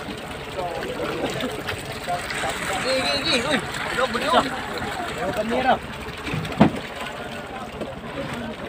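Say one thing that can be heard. Water sloshes and splashes against a boat hull.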